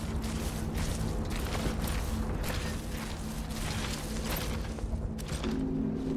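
Footsteps crunch over grass and rocky ground.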